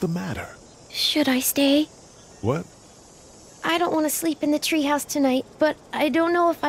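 A young girl speaks softly.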